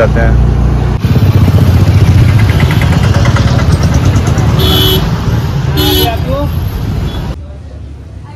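Traffic and a crowd murmur along a busy street.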